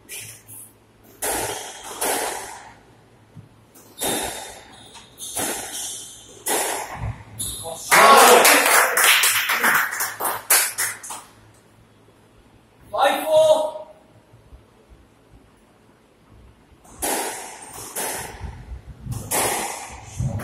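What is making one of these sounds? A squash ball smacks sharply against walls and rackets in an echoing court.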